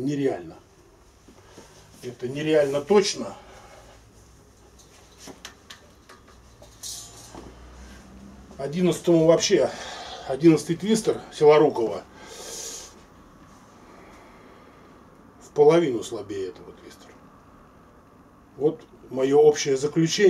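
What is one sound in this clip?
A middle-aged man talks calmly to the listener, close by.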